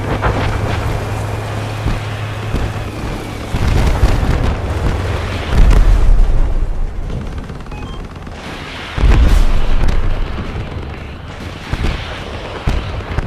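A vehicle engine rumbles and surges.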